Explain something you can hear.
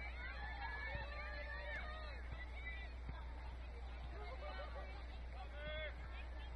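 Players and spectators shout and call out across an open field.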